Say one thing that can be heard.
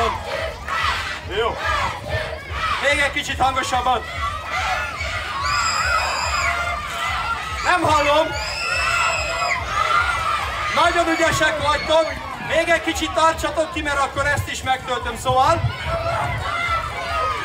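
Children chatter and shout in a crowd.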